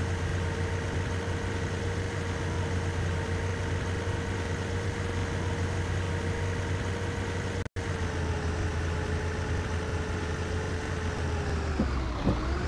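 A bus engine hums steadily and winds down slightly as the bus slows.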